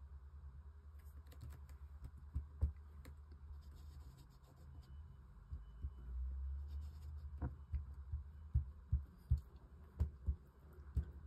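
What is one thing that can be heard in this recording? An ink blending tool dabs and taps softly on paper.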